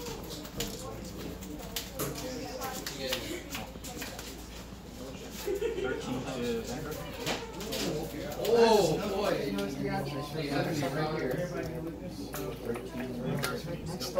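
Playing cards slap and slide on a table mat.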